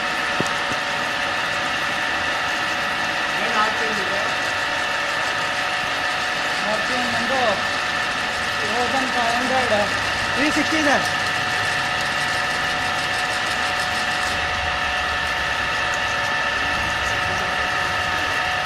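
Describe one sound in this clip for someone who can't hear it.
A drilling machine hums and whines steadily.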